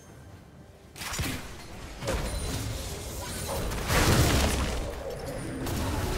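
Magic blasts and heavy hits burst out in a game battle.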